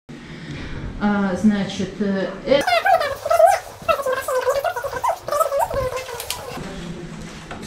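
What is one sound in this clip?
A woman speaks with animation to a group.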